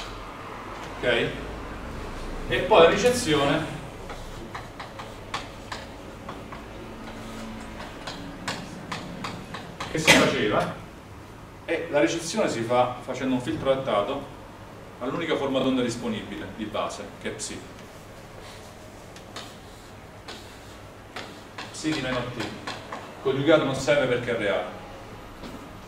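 A man talks calmly in a room with a slight echo.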